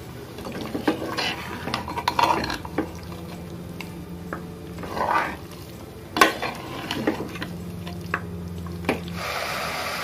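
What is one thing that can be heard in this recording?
A metal spoon scrapes and clinks against a metal pot while stirring meat.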